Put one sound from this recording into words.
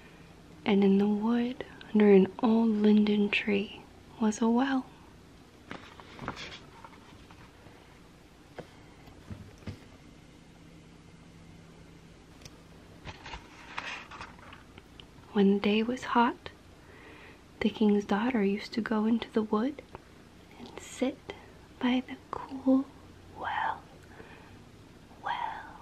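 A woman speaks softly and closely into a microphone.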